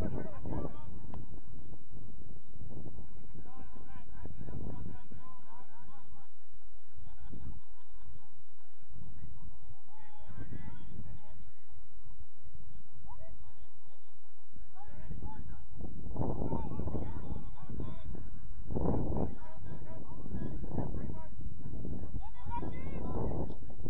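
Young players shout to each other across the field from a distance.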